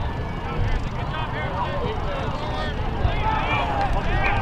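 Players shout and call to each other outdoors.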